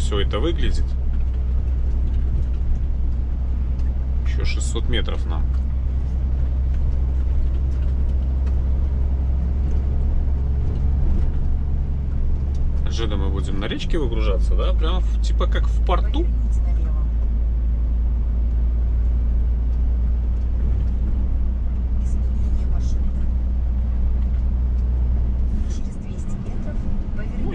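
A heavy vehicle's engine drones steadily from inside the cab, its pitch shifting as the gears change.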